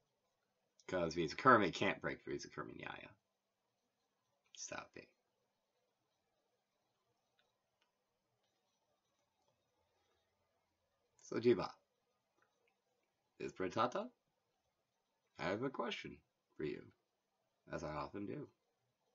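A man speaks calmly and close by, in short bursts with long pauses.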